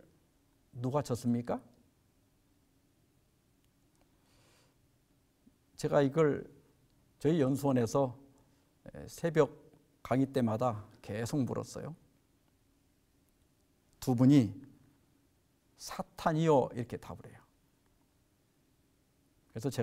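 An elderly man speaks calmly and clearly into a microphone, close by, with pauses between phrases.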